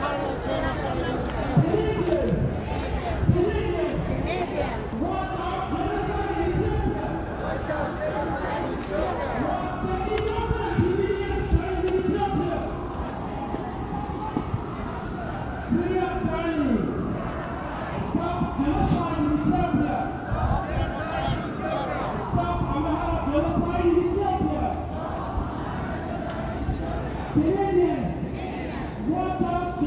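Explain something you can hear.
A crowd of men and women chants loudly in unison outdoors.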